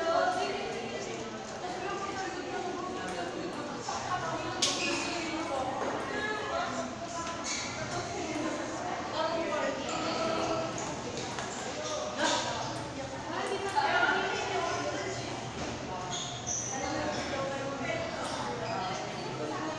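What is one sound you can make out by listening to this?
A ping-pong ball clicks sharply against paddles and the table.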